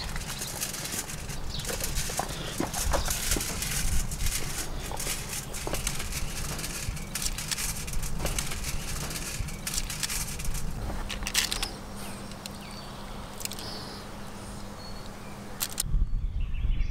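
Hands rub and pat wet fish on crinkling foil, close by.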